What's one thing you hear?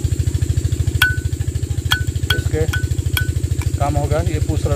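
Metal parts clink and tap as they are handled.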